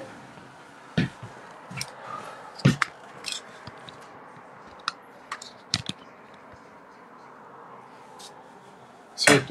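Soft knocks and rustles sound as a phone is handled.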